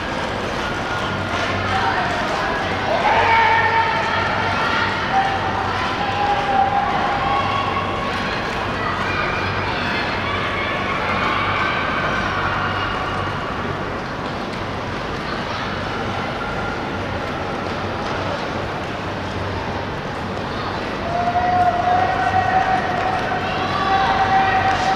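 Men and women shout and cheer from nearby in a large echoing hall.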